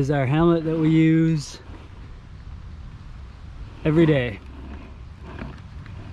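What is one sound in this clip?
A plastic helmet visor clicks as it is lifted.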